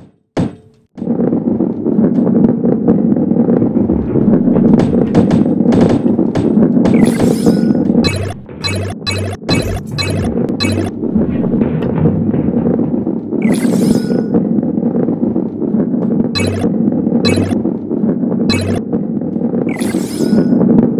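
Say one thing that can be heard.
A ball rolls and rumbles along a track.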